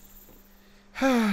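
A magical shimmering chime rings out.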